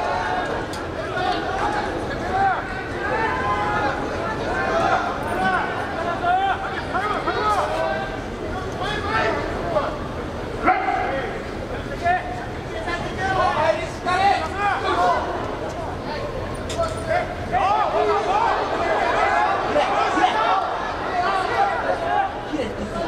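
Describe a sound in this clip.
A crowd of men shout and cheer in a large echoing hall.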